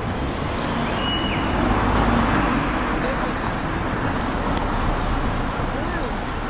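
A taxi drives past close by.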